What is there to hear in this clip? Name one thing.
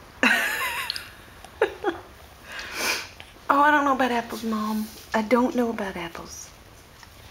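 A baby babbles and squeals close by.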